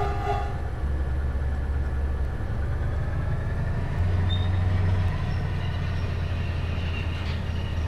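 A diesel locomotive engine drones with a steady low rumble.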